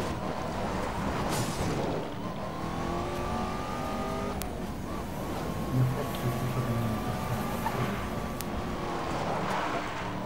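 Tyres skid and scrape on gravel.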